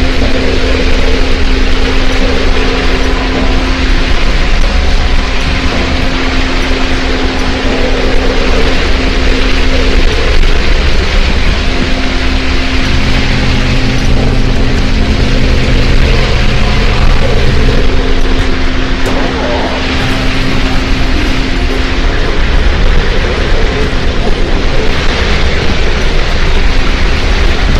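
Rain falls steadily and hisses outdoors.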